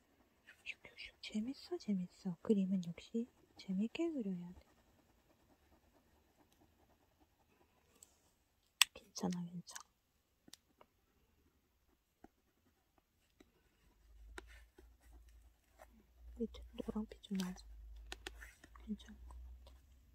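An oil pastel scratches softly across textured paper.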